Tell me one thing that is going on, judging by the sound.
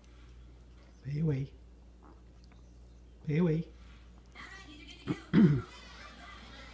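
A small dog lets out short sharp yelps.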